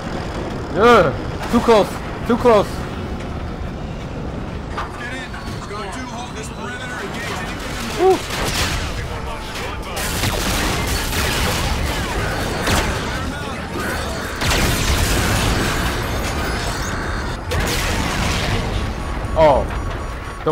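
A young man talks into a headset microphone.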